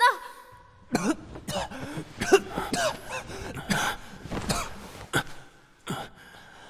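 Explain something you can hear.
A man groans and gasps in pain.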